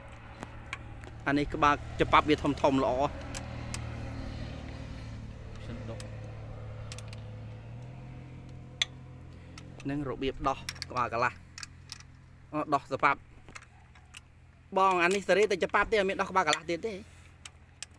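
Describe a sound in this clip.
A metal tool clicks and taps against an engine.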